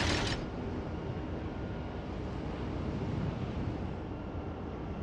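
Water rushes and splashes against a moving ship's hull.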